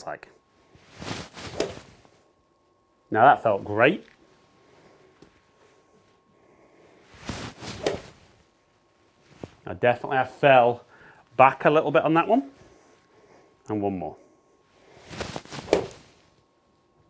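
A golf club strikes a ball with a sharp whack.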